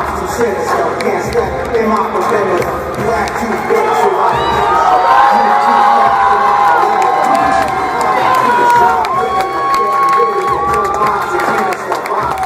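A large crowd chatters and cheers loudly in a big echoing arena.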